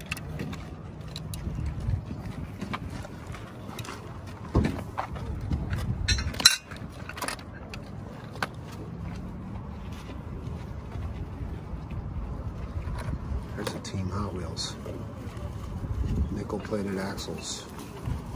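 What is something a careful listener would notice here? Small metal toy cars clink and rattle against a plastic case as they are picked up.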